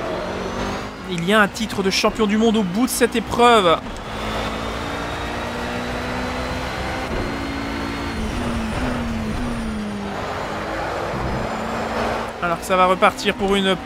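A race car engine revs high and whines on braking.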